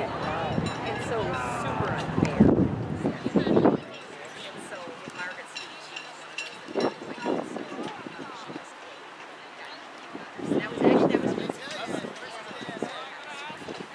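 Spectators chatter nearby outdoors.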